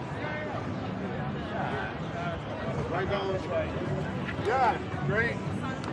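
Men talk casually close by.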